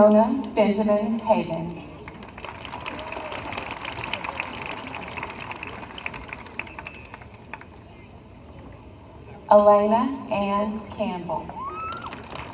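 A man announces through a loudspeaker, outdoors.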